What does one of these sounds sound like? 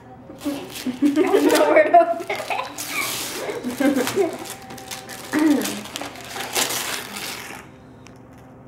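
Wrapping paper crinkles and tears.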